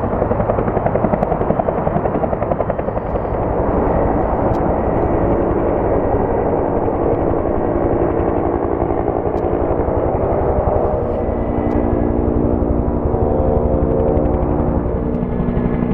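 A helicopter's rotor blades thump steadily overhead.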